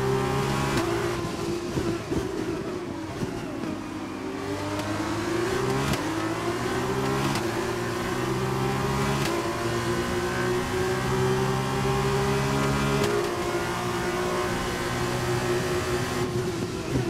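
A racing car engine roars at high revs, dropping in pitch for braking and climbing again as it accelerates.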